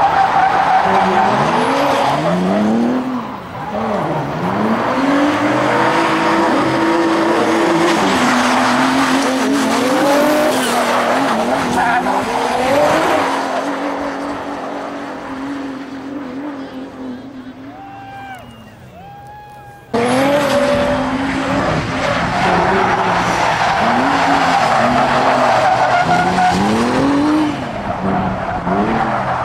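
Tyres screech and squeal on asphalt.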